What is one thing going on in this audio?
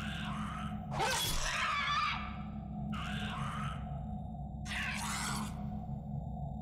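A blade clangs against metal in sharp bursts.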